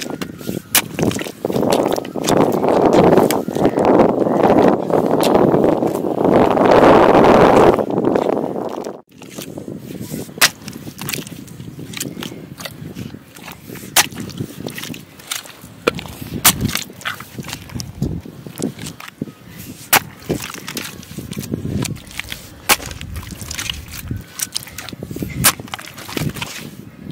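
A hoe chops into wet mud with dull thuds.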